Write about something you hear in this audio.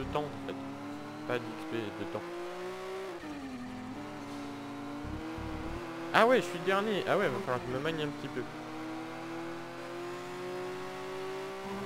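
A car engine revs steadily at high speed, its pitch rising slowly as it accelerates.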